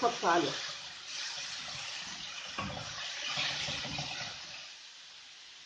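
A spatula scrapes and stirs food in a pan.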